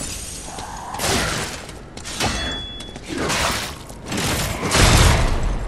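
Swords clash and slash in combat.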